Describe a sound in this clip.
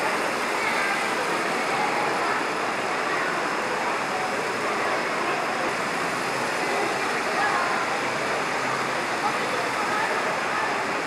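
Model trains rumble and clatter along their tracks.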